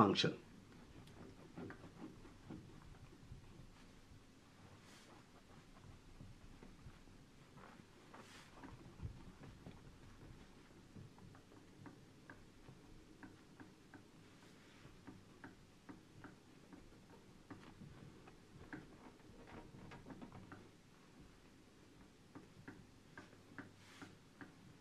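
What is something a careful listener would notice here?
A cloth rubs and squeaks faintly across a glass board.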